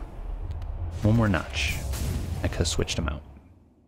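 A blade slashes with a sharp swoosh.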